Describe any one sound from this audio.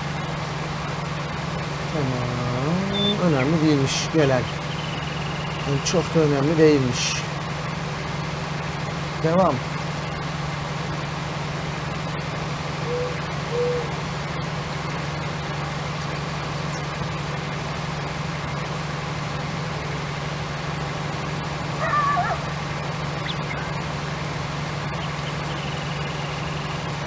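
A harvester engine drones steadily.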